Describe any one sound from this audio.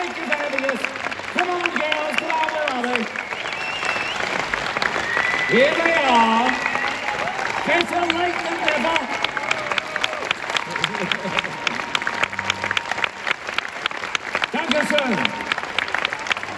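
A crowd cheers and whoops.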